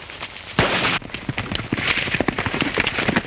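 Horses gallop over hard ground.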